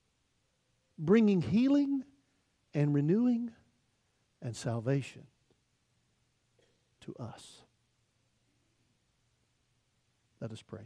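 An older man speaks with animation through a microphone, in short bursts with pauses.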